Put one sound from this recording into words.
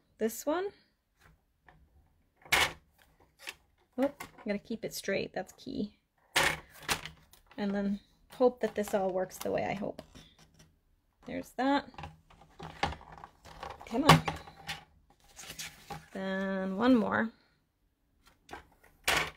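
Paper slides and rustles across a paper trimmer.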